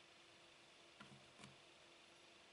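Jigsaw puzzle pieces click and tap softly on a tabletop.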